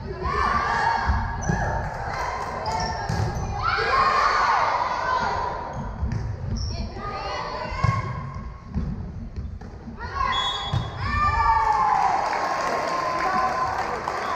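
A volleyball thumps as players hit it.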